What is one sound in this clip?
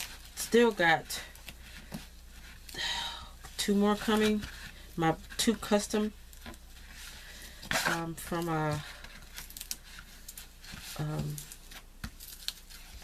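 Plastic wrapping crinkles softly under fingers.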